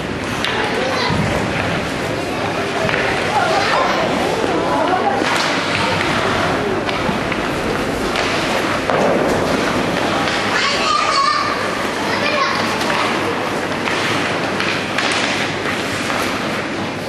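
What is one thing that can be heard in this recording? Spectators call out and cheer in an echoing rink.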